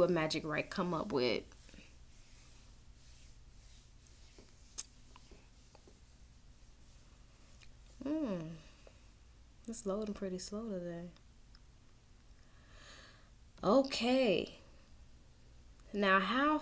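A young woman speaks calmly and casually into a nearby microphone, in short bursts with pauses.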